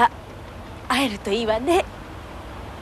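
A woman speaks cheerfully close by.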